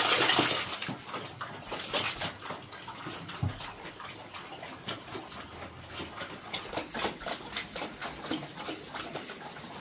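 A pig chews and slurps its food noisily.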